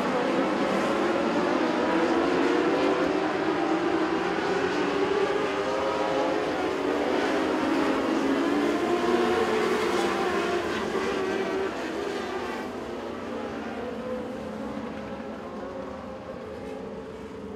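Several race car engines roar loudly around a dirt track.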